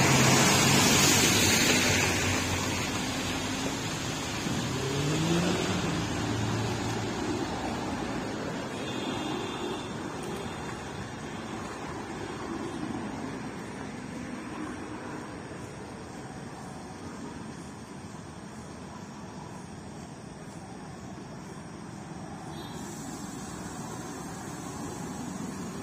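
A vehicle's engine rumbles as it slowly approaches.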